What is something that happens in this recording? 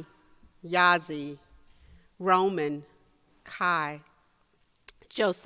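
An elderly woman speaks slowly and expressively into a microphone, in short drawn-out phrases.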